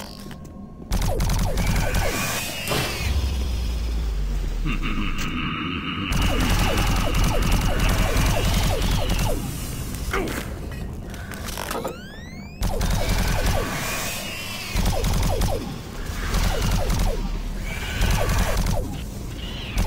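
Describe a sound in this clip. A gun fires rapid energy shots in bursts.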